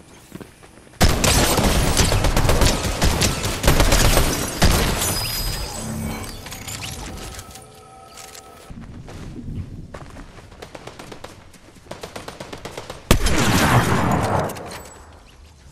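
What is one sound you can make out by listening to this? Rapid gunfire bursts out in a video game.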